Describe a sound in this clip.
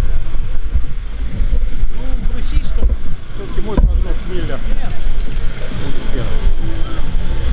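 A man talks nearby, outdoors.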